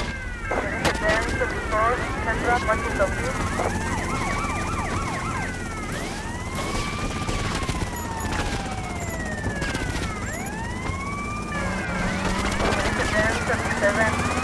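A police siren wails up and down.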